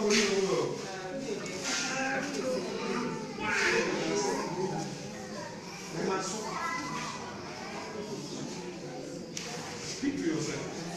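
A man speaks loudly and with animation in an echoing hall.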